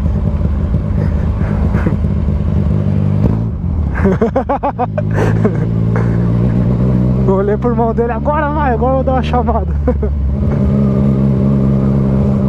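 A motorcycle engine hums steadily and rises and falls in pitch as the rider changes speed.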